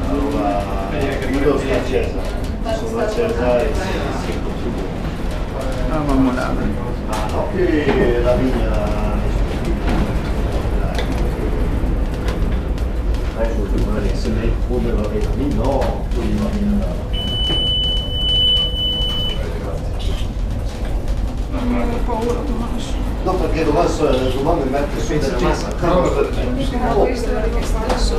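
A young woman talks close by, calmly.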